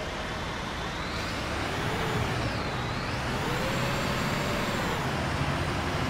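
A bus engine revs up as a bus speeds up and turns.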